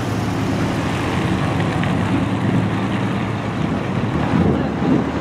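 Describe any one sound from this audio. Car engines hum as cars drive slowly along a road.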